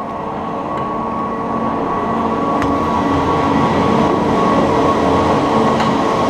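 Chairlift machinery hums and rumbles steadily, growing louder.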